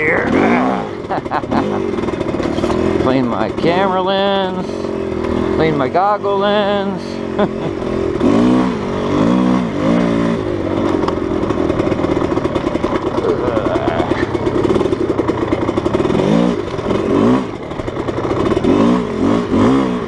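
A vehicle engine revs and roars, rising and falling in pitch.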